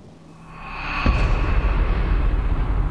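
A body plunges into water with a heavy splash.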